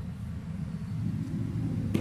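A plastic checker piece is set down on a board.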